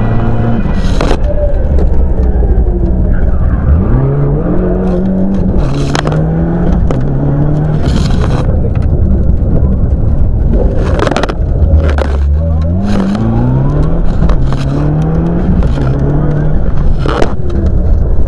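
Gravel and stones clatter against the underside of a car.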